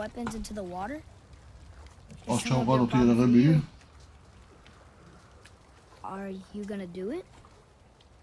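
A boy speaks calmly.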